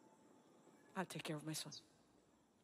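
A woman answers briefly in a low, serious voice.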